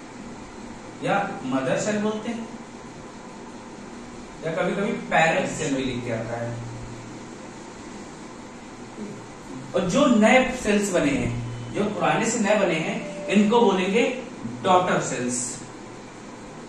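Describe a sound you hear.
A young man speaks in a lecturing tone, close by.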